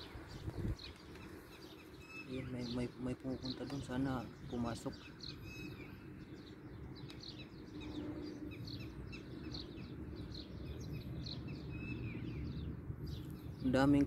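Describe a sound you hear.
Small birds chirp repeatedly outdoors.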